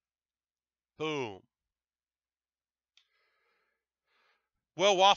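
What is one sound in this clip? A man talks with animation into a close headset microphone.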